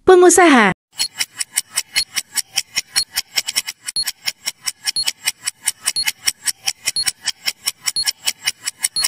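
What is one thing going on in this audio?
A countdown timer ticks quickly and steadily.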